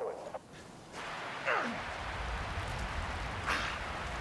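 A fire flares up and crackles in dry grass.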